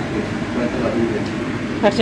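Eggs sizzle in a hot pan.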